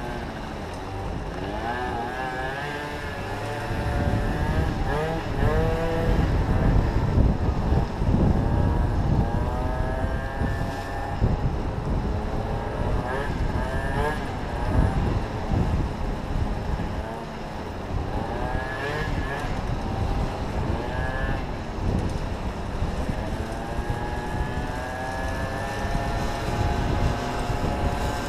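Wind rumbles outdoors.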